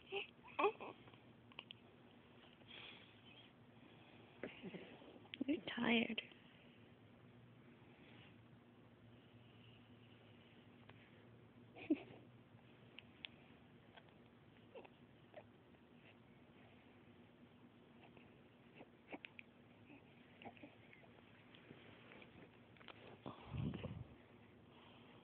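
A baby squeals and babbles up close.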